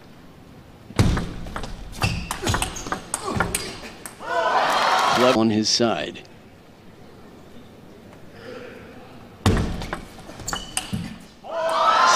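A table tennis ball clicks back and forth off paddles and the table in a quick rally.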